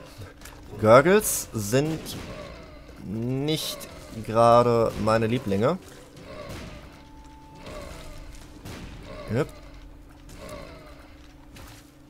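Small shots pop and splat repeatedly in a video game.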